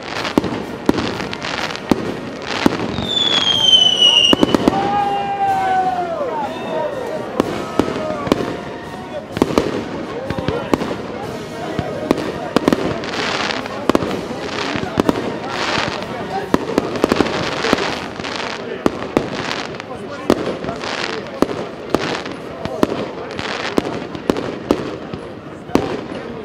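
Fireworks crackle and sizzle overhead.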